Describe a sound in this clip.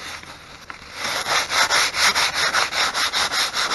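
Sandpaper rubs back and forth over wood in quick strokes.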